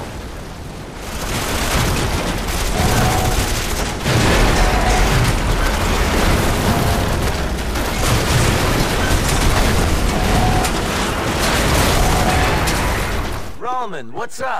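A heavy vehicle engine rumbles.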